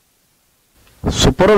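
A man speaks up close.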